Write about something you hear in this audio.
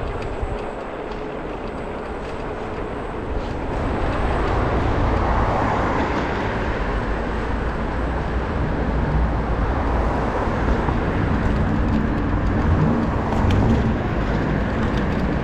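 Wind rushes loudly past the microphone while riding.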